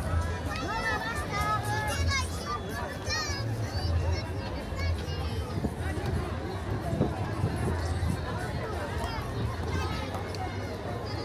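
A crowd chatters and calls out outdoors along a street.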